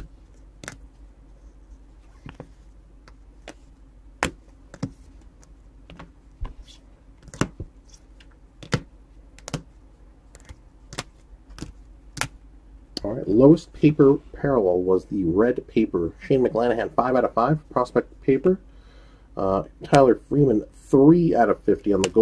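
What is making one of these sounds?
Plastic card holders click and tap against each other as they are handled.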